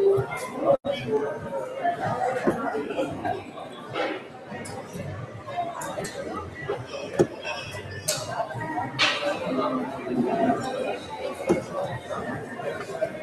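Darts thud into a dartboard one after another.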